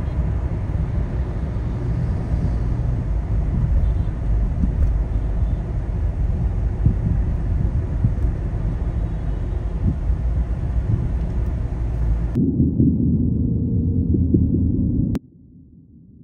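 Dense city traffic rumbles steadily close by.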